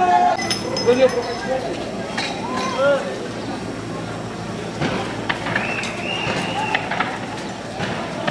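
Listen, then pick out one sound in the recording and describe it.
A crowd of young men shouts outdoors.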